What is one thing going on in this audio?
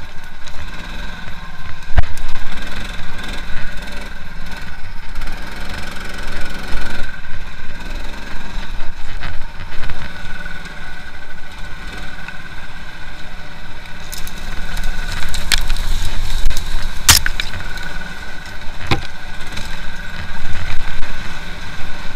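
A motorbike engine hums and revs steadily close by.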